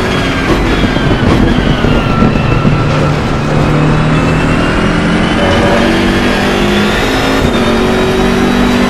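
Tyres rumble over the track.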